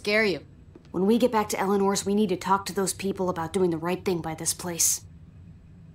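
A woman speaks in a low, serious voice.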